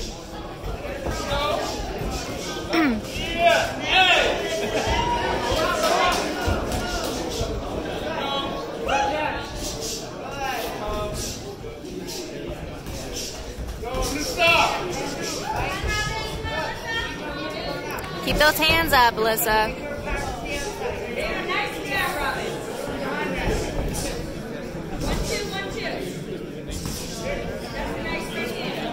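A crowd of onlookers shouts and cheers in a large echoing hall.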